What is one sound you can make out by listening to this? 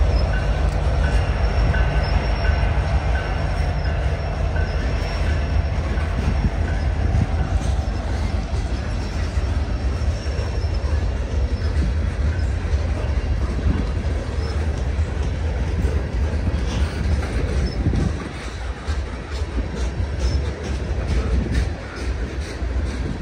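Freight cars clatter and rattle over the rails.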